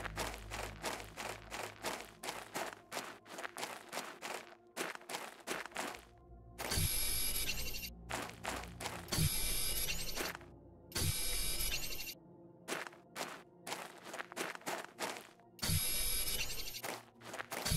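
Footsteps crunch steadily on gravelly ground.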